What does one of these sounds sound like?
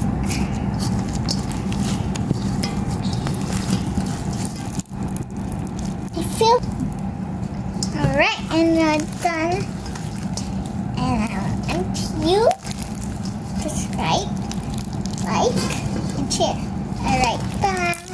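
Sticky slime squishes and crackles as hands knead it.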